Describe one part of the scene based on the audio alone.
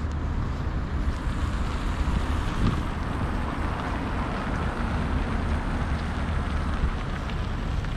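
Cars drive past on a nearby road.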